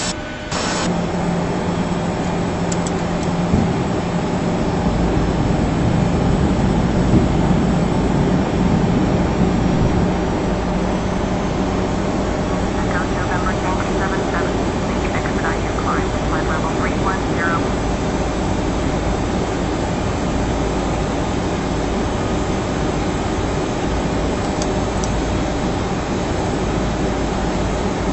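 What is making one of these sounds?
A jet airliner's engines drone steadily from inside the cockpit.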